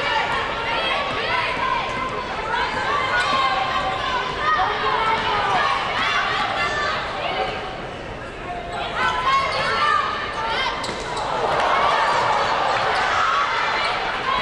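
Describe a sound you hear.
A crowd murmurs in a large echoing arena.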